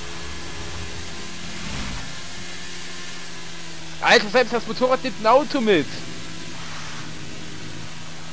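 A motorcycle engine hums while cruising.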